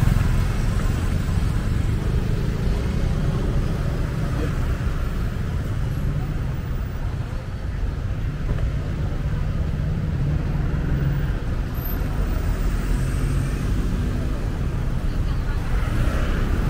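A motorbike engine hums steadily up close as it rides along.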